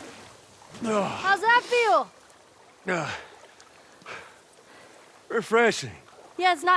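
A young woman calls out loudly and with emotion.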